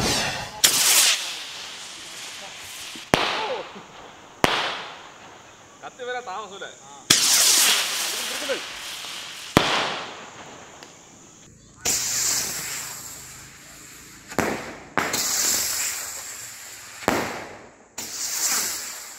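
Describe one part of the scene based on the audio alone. Fireworks bang loudly outdoors, one after another, echoing off into the distance.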